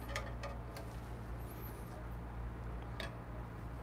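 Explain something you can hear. A ceramic cup clinks down onto a metal drip tray.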